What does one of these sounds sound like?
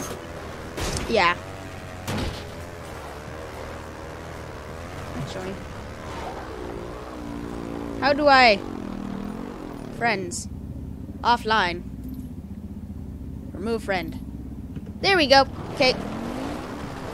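A motorbike engine hums steadily.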